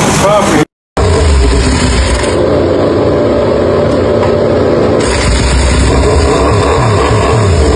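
A racing motorcycle engine runs loudly nearby.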